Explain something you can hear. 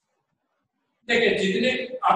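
A man speaks loudly and clearly, close by.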